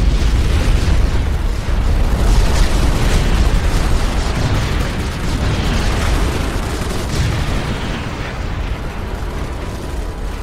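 Explosions rumble deeply.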